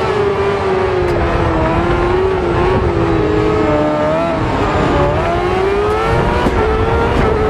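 A racing car engine drones and revs up and down steadily.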